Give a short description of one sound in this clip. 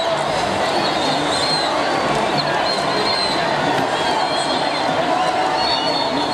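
A large crowd cheers, shouts and whistles outdoors.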